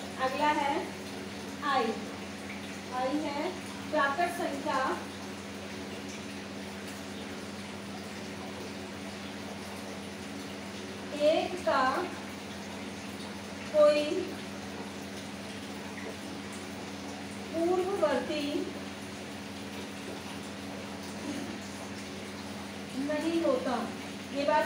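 A woman speaks calmly in short phrases, close by.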